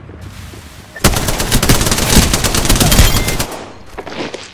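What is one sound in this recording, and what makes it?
An automatic rifle fires rapid bursts of gunfire.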